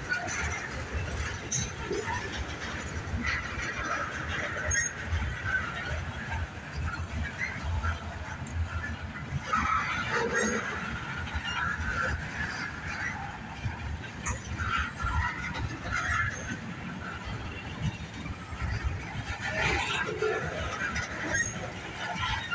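A long freight train rolls past close by, its wheels rumbling and clacking on the rails.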